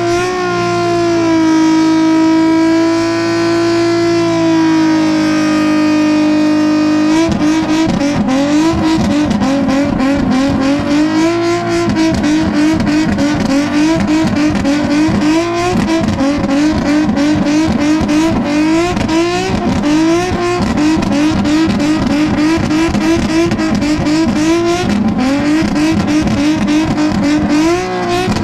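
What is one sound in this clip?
Car tyres screech as they spin on the ground.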